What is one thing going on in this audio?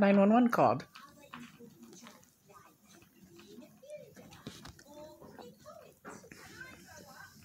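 A woman chews food noisily with her mouth close by.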